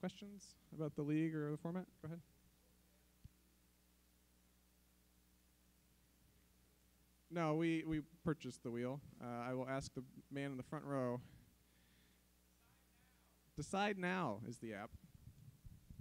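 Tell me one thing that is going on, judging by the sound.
A man speaks into a microphone in short bursts with pauses.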